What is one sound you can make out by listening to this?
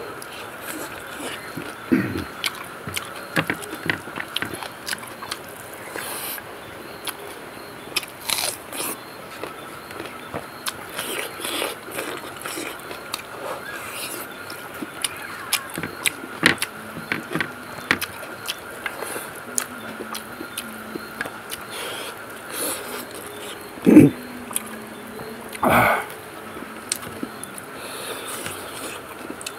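A man chews and smacks his lips close to a microphone.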